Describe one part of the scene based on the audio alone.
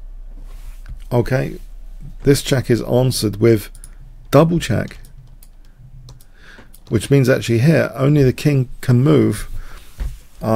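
A middle-aged man speaks calmly and explains into a close microphone.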